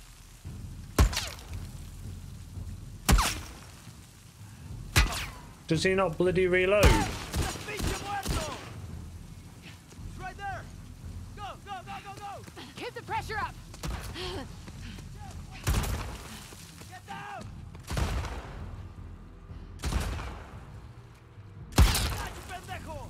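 Gunshots ring out with echoes, one at a time.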